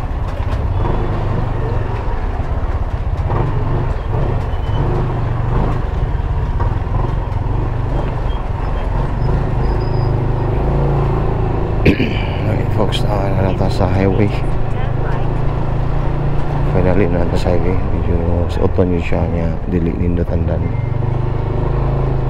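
A motorcycle engine hums steadily while riding slowly.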